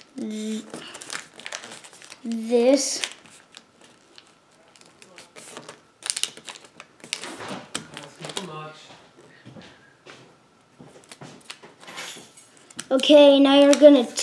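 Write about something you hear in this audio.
Paper crinkles and rustles as it is folded by hand.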